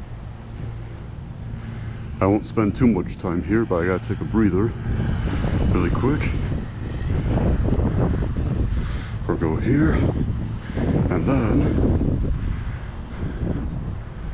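Wind blows across open ground, rumbling low.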